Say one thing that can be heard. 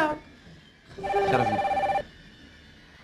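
A phone rings.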